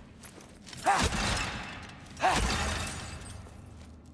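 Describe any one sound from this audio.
Loose objects burst out and clatter.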